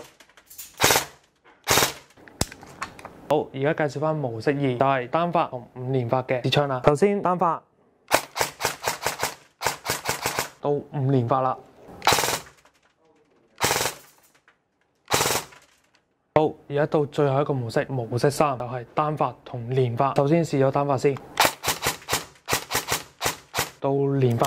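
An airsoft gun fires sharp shots in short bursts.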